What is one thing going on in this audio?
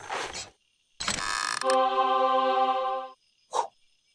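A game chest opens with a chiming reward jingle.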